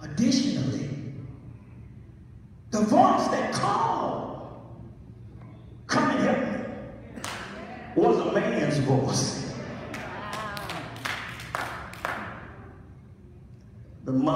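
An elderly man preaches with animation through a microphone in a large echoing hall.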